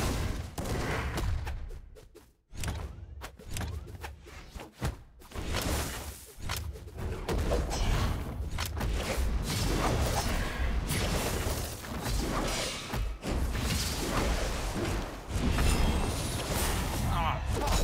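Cartoon fighters clash with quick hits and whooshing swipes.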